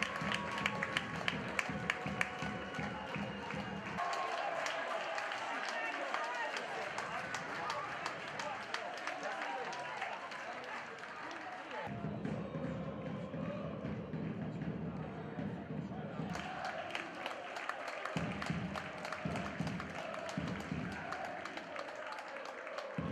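A crowd cheers in an open stadium.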